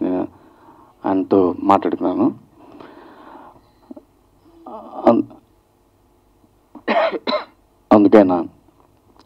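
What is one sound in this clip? A middle-aged man speaks into a microphone, heard through a loudspeaker, in short bursts with pauses.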